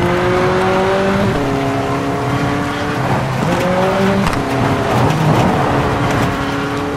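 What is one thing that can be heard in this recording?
A buggy's engine roars loudly, its pitch shifting up and down with the gears.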